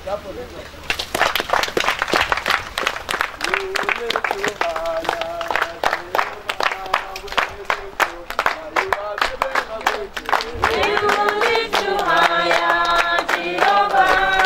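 A group of people clap their hands in rhythm.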